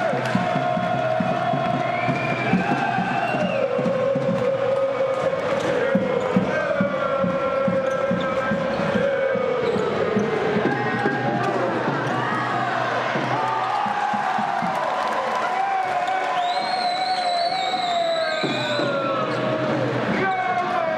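A large crowd chants and sings in a big echoing hall.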